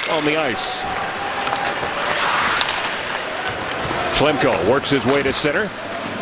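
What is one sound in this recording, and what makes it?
Ice skates scrape and glide across the ice.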